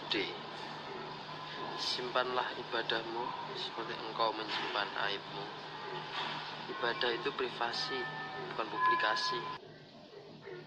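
A young man talks close to a phone's microphone.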